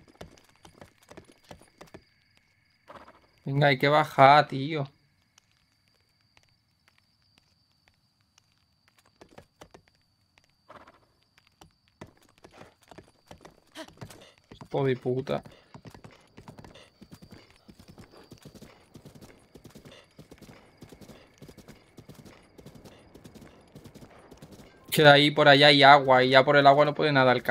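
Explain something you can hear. Horse hooves clop quickly on the ground.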